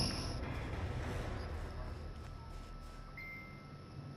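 Footsteps run through tall grass.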